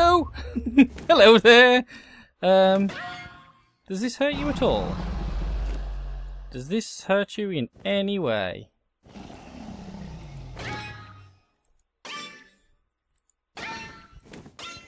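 A dragon roars.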